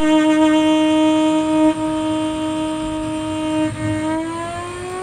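A violin plays long sustained notes that slide upward at the end, in a room with a slight echo.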